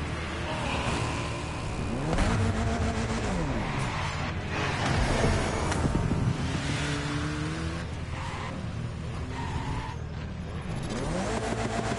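A car engine revs and idles with a throaty rumble.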